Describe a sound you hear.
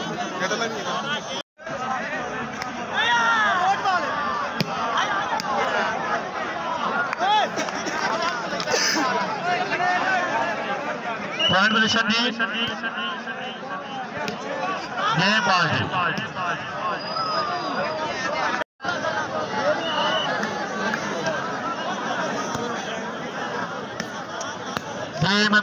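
A large outdoor crowd chatters and shouts excitedly.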